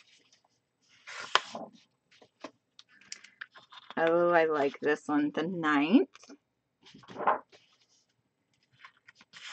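Plastic sleeves rustle and crinkle as they are handled.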